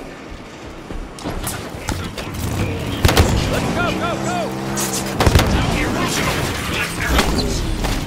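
A vehicle engine revs in a video game.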